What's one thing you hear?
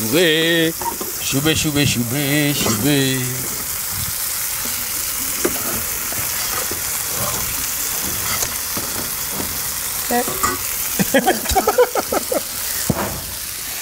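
Beans simmer and bubble softly in a pan.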